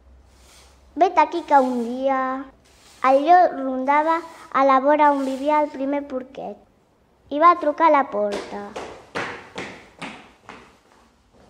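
A young girl sings in a clear, high voice.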